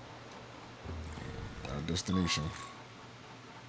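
A man speaks briefly and with animation into a close microphone.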